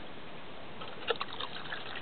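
Liquid pours and splashes into a plastic bottle.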